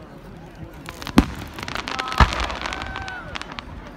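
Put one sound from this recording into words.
Firework stars crackle and pop.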